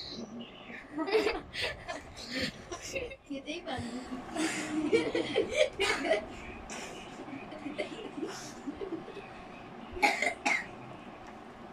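Several children laugh together close by.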